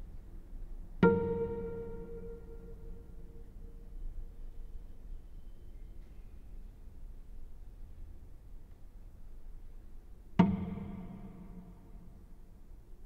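A cello string is plucked and rings out.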